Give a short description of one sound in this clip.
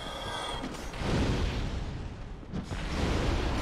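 Fire bursts with a roaring whoosh.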